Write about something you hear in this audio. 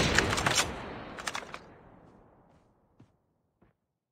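A rifle shot cracks loudly and echoes away.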